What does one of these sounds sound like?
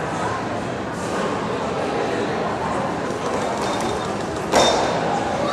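A seated crowd murmurs in a large echoing hall.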